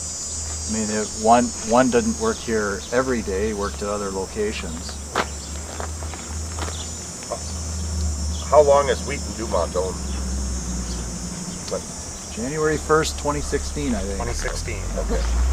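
A man speaks calmly outdoors.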